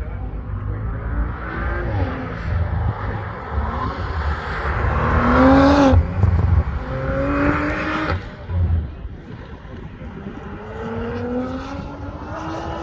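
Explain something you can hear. A car engine revs hard and rises in pitch through the gears as the car speeds past.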